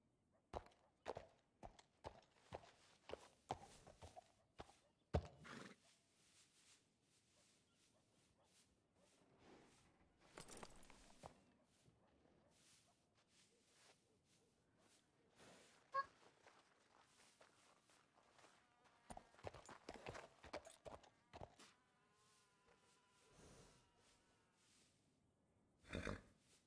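Horse hooves clop on a brick floor.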